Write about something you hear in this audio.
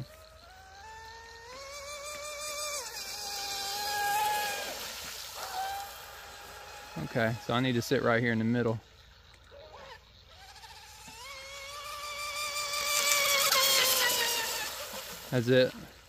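Water hisses and sprays behind a speeding boat.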